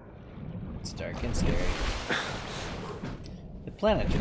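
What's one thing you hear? An explosion booms and rumbles underwater.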